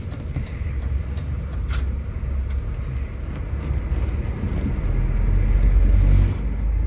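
A bus engine rumbles low and steady from inside the moving bus.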